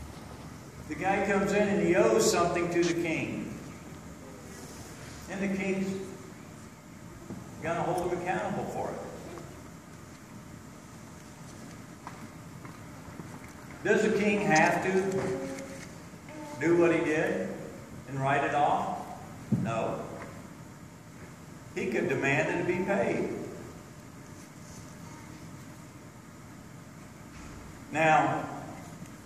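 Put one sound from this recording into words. An elderly man speaks calmly into a microphone, in pauses, in a large echoing hall.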